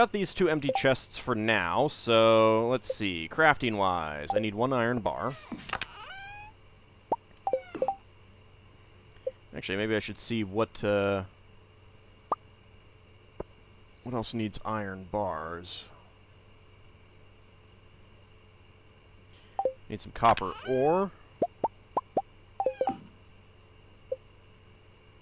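Short soft clicks of a game menu sound now and then.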